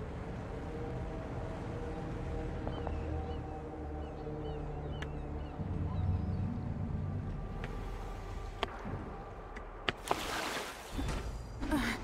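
Water laps gently against a wooden hull.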